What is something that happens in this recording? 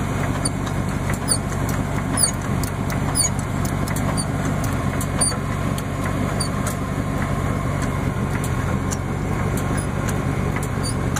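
A floor jack clicks and creaks as its handle is pumped.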